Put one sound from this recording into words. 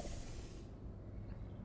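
A portal opens with a whooshing hum.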